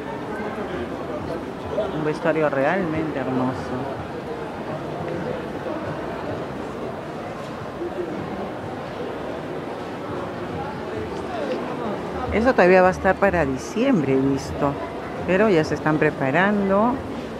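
A crowd of shoppers murmurs in a large echoing hall.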